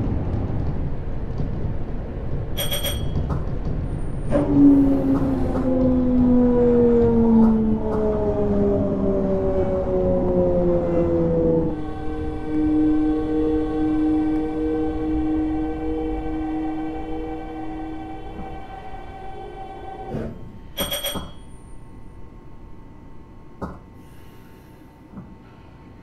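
A train rumbles along rails.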